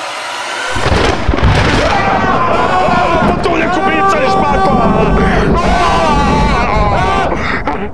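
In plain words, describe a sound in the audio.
A man cries out loudly in shock.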